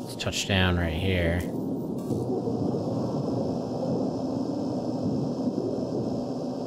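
A spaceship engine roars and hums steadily.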